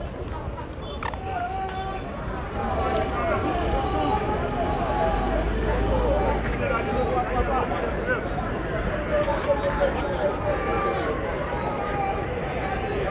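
A crowd of people murmurs and chatters in the background.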